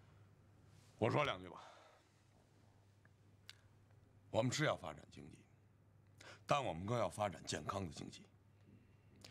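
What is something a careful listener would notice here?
A middle-aged man speaks calmly and firmly, close by.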